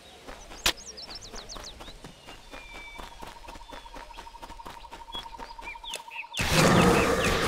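Footsteps crunch steadily on gravel and grass.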